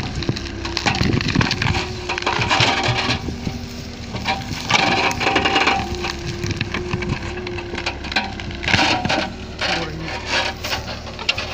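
An excavator bucket scrapes and digs into soil and roots.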